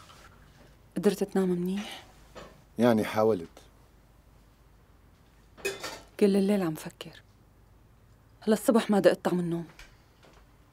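A young woman speaks quietly at close range.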